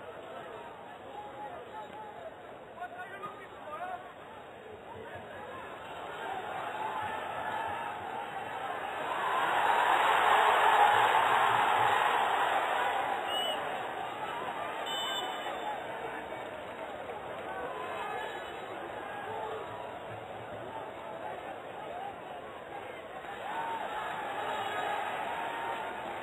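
A stadium crowd cheers and roars, swelling loudly and then fading.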